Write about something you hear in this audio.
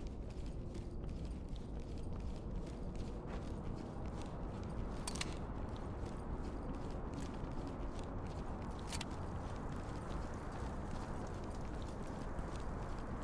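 Footsteps crunch steadily on rough ground.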